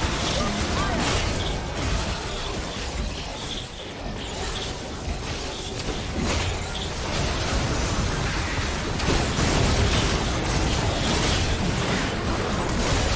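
Magic blasts and weapon hits clash rapidly in a busy fight.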